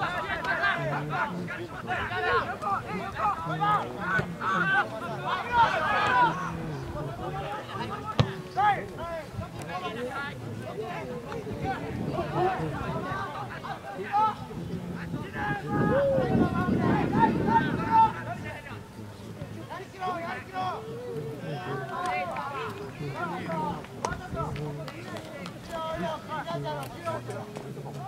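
Spectators nearby chatter and call out.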